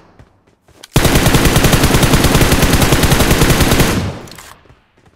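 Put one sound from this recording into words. A rifle fires in a long, rapid automatic burst.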